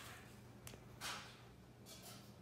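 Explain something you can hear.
A plastic cup taps against a plastic bowl.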